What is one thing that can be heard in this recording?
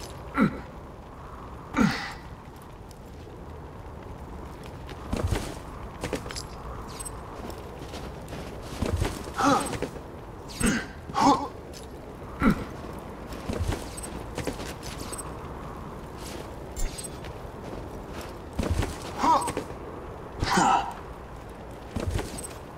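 Gift boxes pop open with short, sharp bursts.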